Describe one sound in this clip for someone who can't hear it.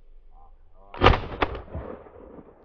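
A shotgun fires a single shot that echoes across open country.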